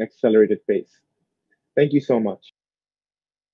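A young man speaks calmly through an online call.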